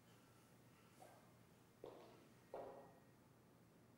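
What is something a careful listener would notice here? High heels tap on a hard floor.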